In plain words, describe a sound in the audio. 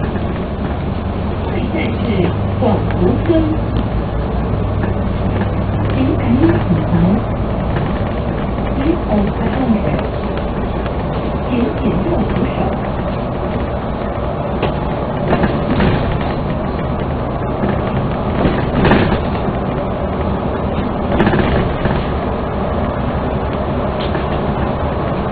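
Tyres roll on the road surface with a steady rumble.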